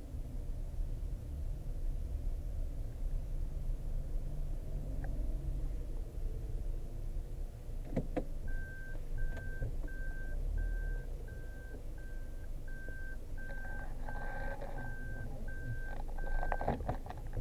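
A car's engine and tyres rumble, heard from inside the cabin.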